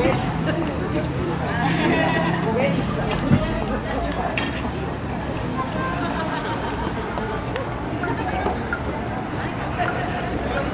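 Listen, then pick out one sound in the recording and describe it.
Shoes step and scuff on pavement.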